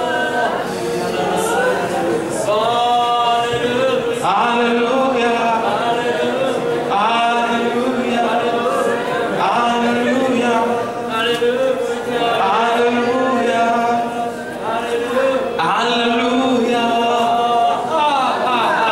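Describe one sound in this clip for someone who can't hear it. A young man sings loudly into a microphone over loudspeakers.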